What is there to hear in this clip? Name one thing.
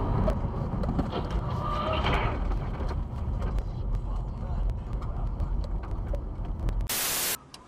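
A truck roars past close by.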